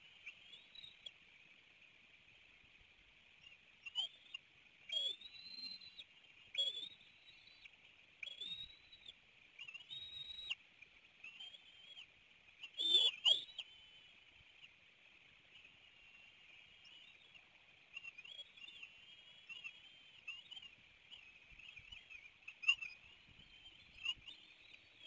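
Eagles give high, thin chirping calls on and off.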